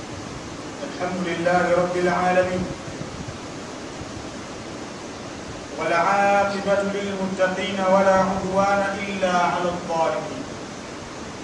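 A man chants in a sustained, melodic voice through a microphone in a large echoing hall.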